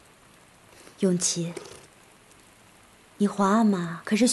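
A young woman speaks gently.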